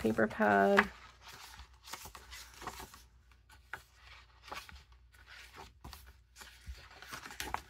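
Paper rustles and flaps as sheets are turned and handled.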